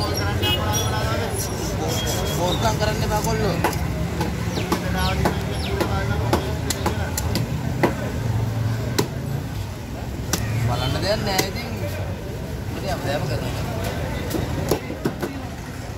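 A large knife scrapes scales off a fish.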